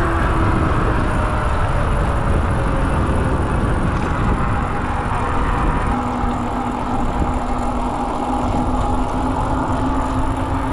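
Wind buffets loudly past the rider throughout.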